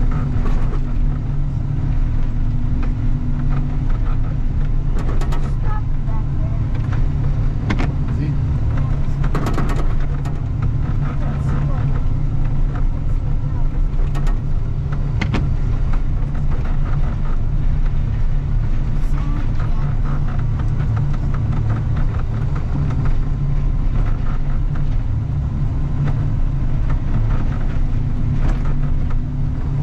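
Snow and ice crunch and scrape under the plough blade.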